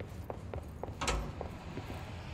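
A heavy door thuds open.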